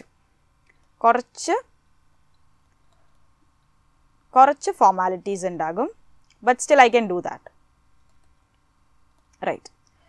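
A young woman speaks calmly and clearly into a close microphone, pausing between phrases.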